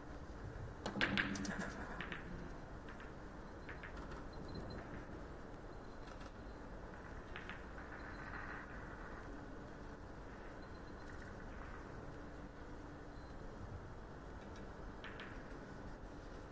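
A cue strikes a ball sharply.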